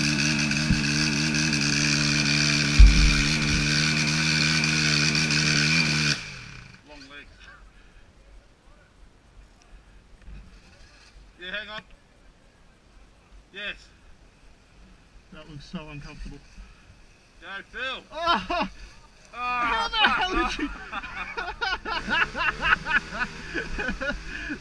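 A four-stroke dirt bike revs in bursts as it struggles up a muddy hill.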